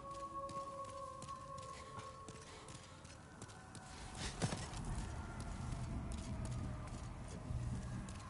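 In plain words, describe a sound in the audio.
Armored footsteps clank on stone as a knight runs.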